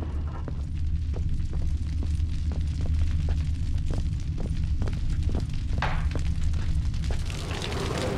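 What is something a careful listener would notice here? Footsteps thud steadily on wooden floorboards.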